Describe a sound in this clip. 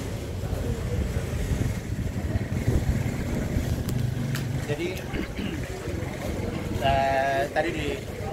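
A man speaks calmly close by, outdoors.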